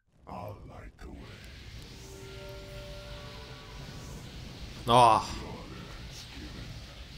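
Magic spells crackle and hiss in a game.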